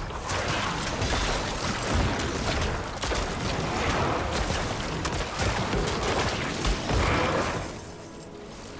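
Loud game combat effects crash and boom with explosions.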